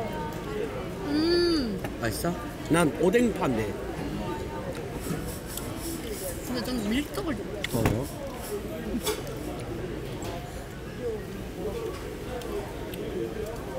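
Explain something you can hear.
A busy crowd murmurs in the background outdoors.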